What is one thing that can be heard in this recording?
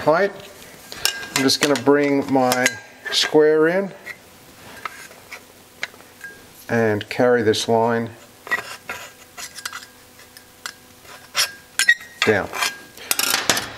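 Thin metal parts tap and clink lightly as hands handle them.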